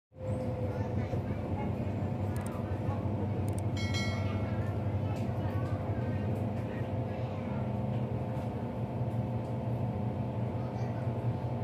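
A train hums and rumbles steadily as it rolls along.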